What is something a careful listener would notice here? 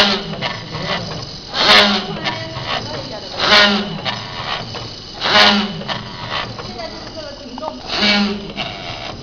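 A packaging machine whirs and clatters steadily.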